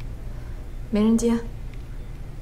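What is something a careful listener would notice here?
A woman speaks briefly and quietly.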